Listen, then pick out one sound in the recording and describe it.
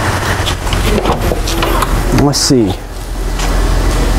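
A car's boot lid clicks open.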